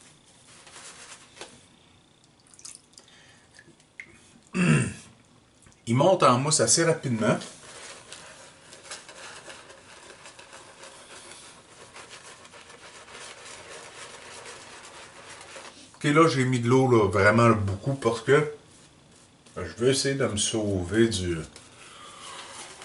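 Shaving cream is rubbed and lathered on a man's face with soft squishing.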